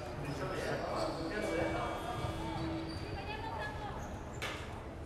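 A man speaks calmly close by in an echoing hall.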